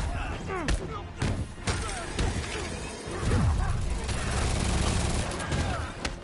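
Laser guns fire in quick zapping bursts.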